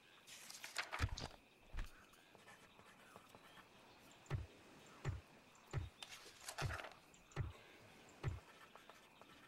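Dull thumps sound as game menu buttons are clicked one after another.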